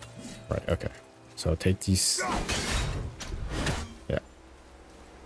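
Heavy boots thud and gear clanks as a warrior moves over rock.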